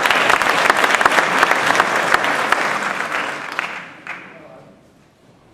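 An audience claps in a large echoing hall, then the applause fades away.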